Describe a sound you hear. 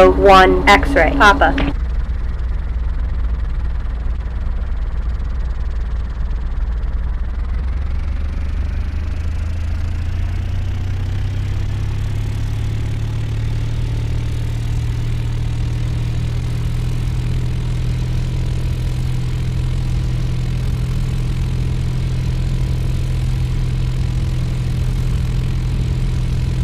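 An aircraft engine drones steadily and slowly rises in pitch.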